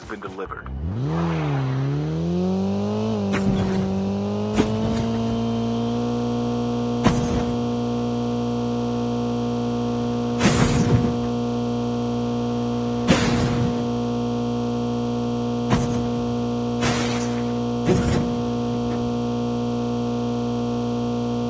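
A car engine revs up and then hums steadily as the car drives.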